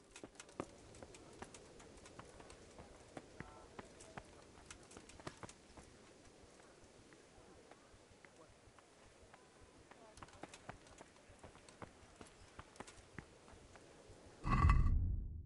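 Footsteps crunch steadily on stone and gravel.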